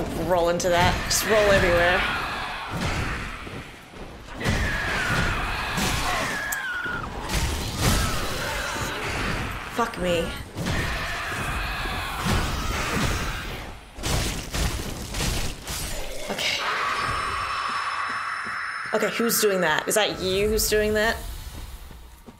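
A large creature screeches and growls.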